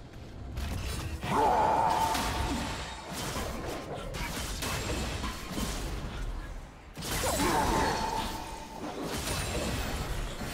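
Magic spell effects whoosh and crackle during a fight.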